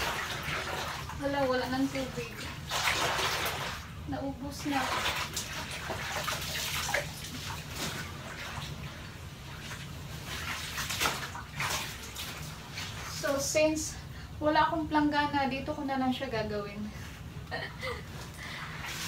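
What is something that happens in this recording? A gloved hand scrubs a bathtub with a rough rubbing sound.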